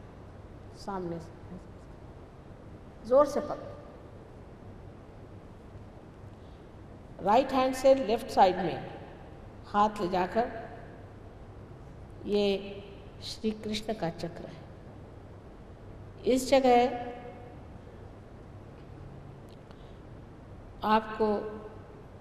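An elderly woman speaks calmly into a microphone, in short phrases with pauses.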